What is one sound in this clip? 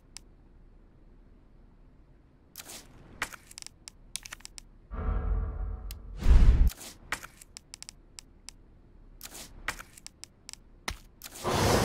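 Game menu sounds click and beep.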